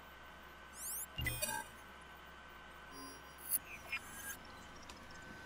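A holographic control panel beeps and chirps.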